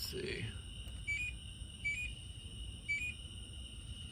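An appliance beeps with short high tones as its buttons are pressed.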